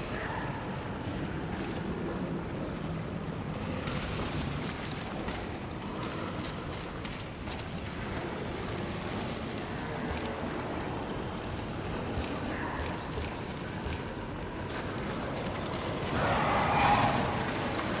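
Footsteps crunch over stone and gravel.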